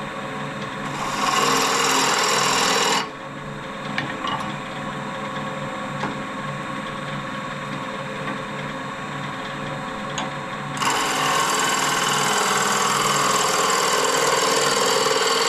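A chisel scrapes and hisses against spinning wood.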